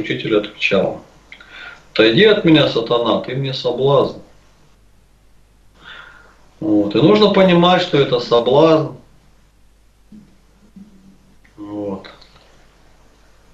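A man speaks calmly into a nearby microphone, in bursts with pauses.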